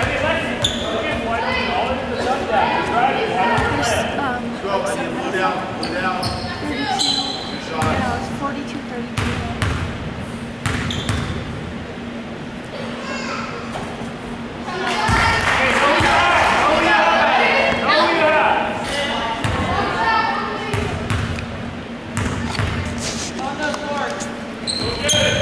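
Young women call out and chatter in a large echoing gym.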